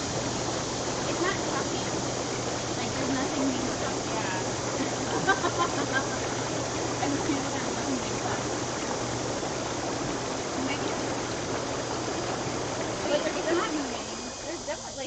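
Water bubbles and churns loudly in a hot tub.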